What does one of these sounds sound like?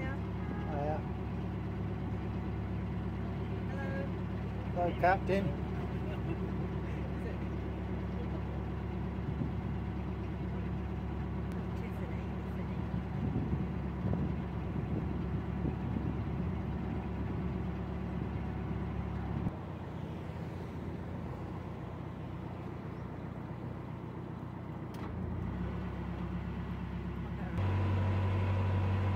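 A boat engine chugs steadily at a low pitch.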